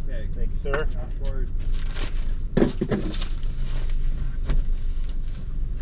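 A car engine idles with a low steady hum.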